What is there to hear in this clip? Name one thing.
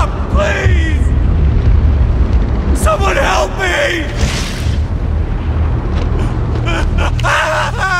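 Wind rushes past in a steady whoosh.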